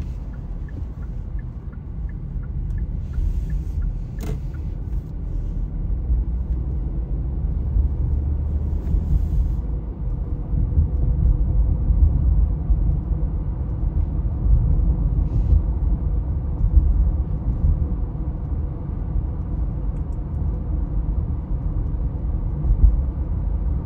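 A car's engine hums and its tyres rumble steadily on the road, heard from inside.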